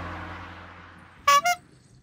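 A small toy car rolls across a smooth surface.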